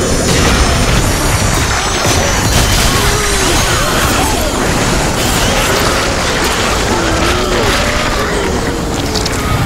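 Blades slash and clash in a fierce fight.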